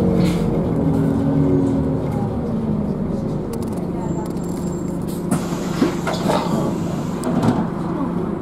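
A bus engine hums and whines as the bus drives along.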